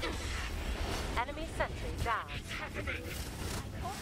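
Explosions burst close by.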